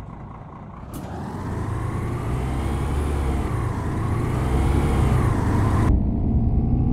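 A bus door hisses shut.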